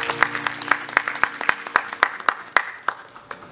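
A harmonium plays sustained chords.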